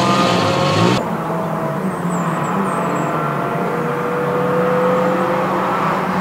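A car engine revs and approaches from the distance.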